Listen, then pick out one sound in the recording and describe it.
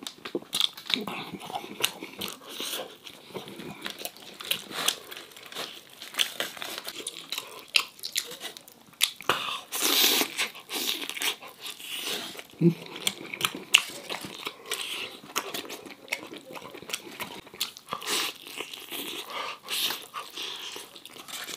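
A man chews and bites into crispy chicken close to the microphone.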